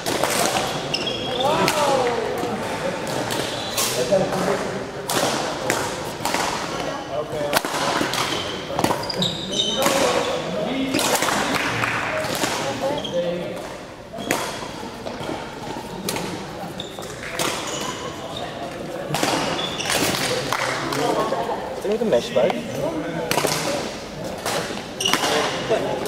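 Shoes squeak and thud on a hard indoor floor.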